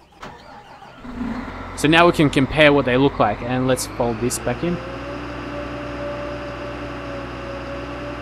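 A large farm harvester engine hums steadily.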